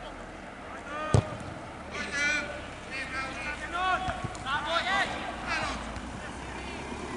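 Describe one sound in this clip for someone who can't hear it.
Men shout to each other in the distance on an open field.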